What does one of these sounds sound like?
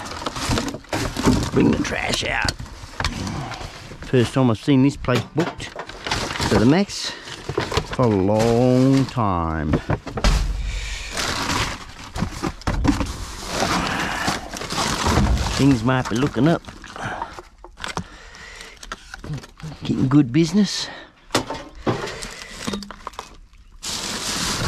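Plastic bags and paper rustle and crinkle.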